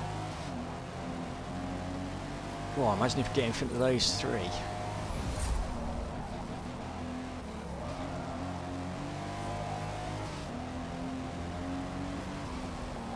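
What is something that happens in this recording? A car engine hums steadily and shifts in pitch as it speeds up and slows down.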